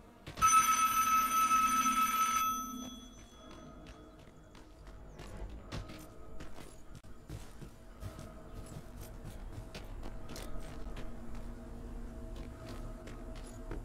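Footsteps crunch over gravel and dirt at a steady walking pace.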